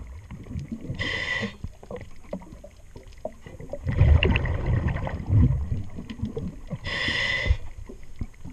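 A diver draws a hissing breath through a regulator underwater.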